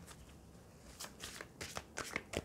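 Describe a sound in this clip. Playing cards rustle and tap as they are handled.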